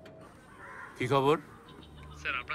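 An elderly man speaks loudly into a phone.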